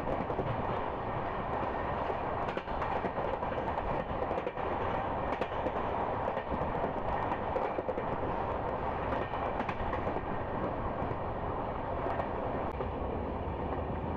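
Wind rushes loudly past an open train door.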